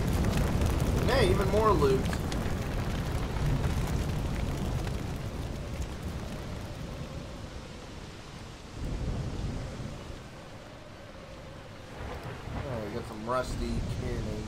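A man speaks casually into a nearby microphone.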